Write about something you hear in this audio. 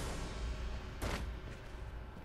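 A heavy thud sounds as a figure lands on the ground.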